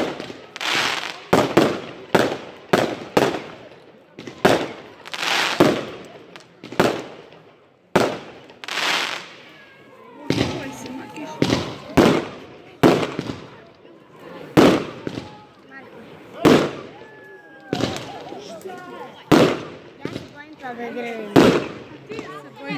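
Fireworks bang and crackle loudly overhead, one burst after another.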